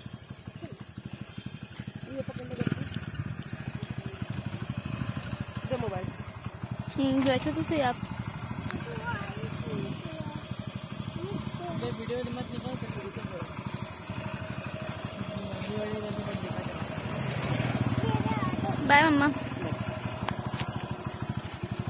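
A motorcycle engine idles nearby with a steady low rumble.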